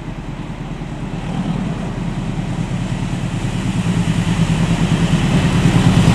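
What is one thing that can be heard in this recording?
Train wheels clatter and roar on the rails close by.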